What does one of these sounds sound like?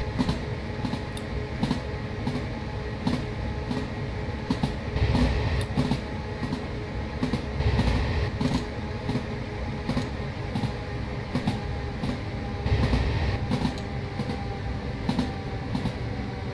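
A train motor hums steadily.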